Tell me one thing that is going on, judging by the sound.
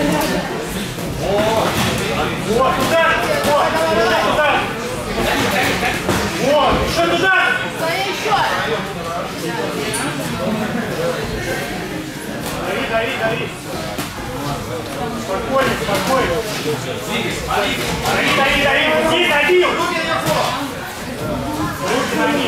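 A man talks loudly.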